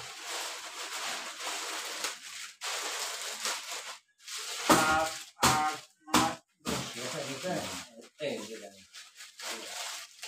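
A plastic bag rustles and crinkles in someone's hands.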